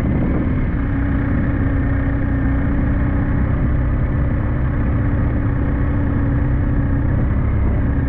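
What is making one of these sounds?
Tyres roll on wet asphalt.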